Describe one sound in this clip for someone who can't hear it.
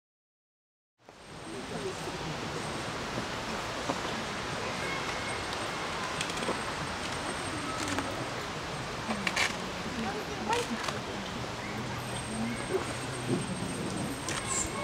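Wind rustles the leaves of trees outdoors.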